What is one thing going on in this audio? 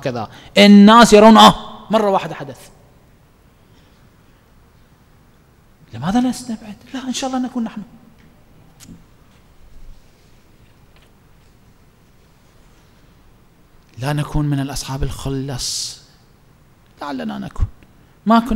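A man speaks with animation into a microphone, in bursts with long pauses.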